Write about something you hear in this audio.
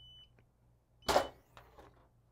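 A heat press lid opens with a clunk.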